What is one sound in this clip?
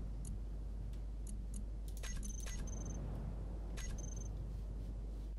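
Short electronic clicks and beeps sound in quick succession.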